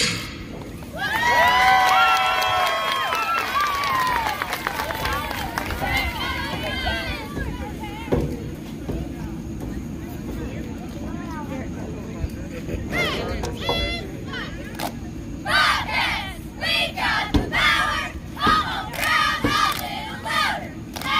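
A group of young women chant cheers loudly in unison outdoors.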